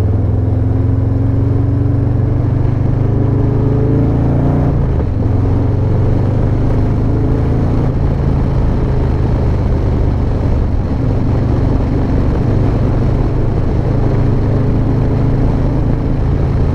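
A motorcycle engine hums steadily as the bike rides along a road.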